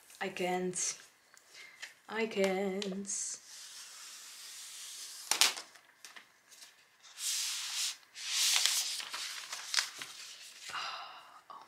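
A tablet slides and scrapes out of a cardboard box.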